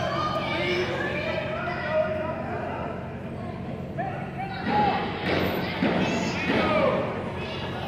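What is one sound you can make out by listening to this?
Wrestlers thud onto a ring mat in a large echoing hall.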